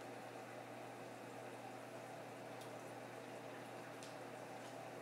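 Water trickles and bubbles gently in a tank.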